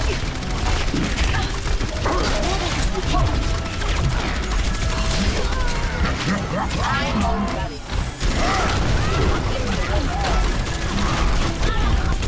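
An energy gun fires rapid bursts.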